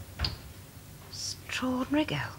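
A second woman answers softly.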